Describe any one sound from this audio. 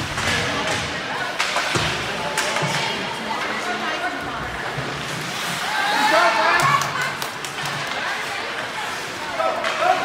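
Skates scrape and glide across ice in a large echoing rink.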